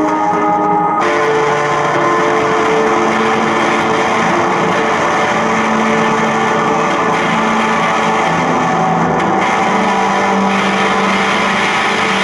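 An electric guitar plays a noisy, buzzing drone.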